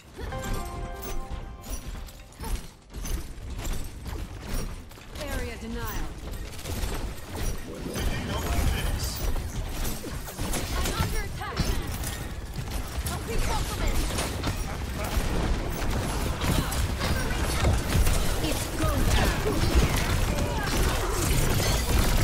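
Game gunfire and weapon effects crackle rapidly.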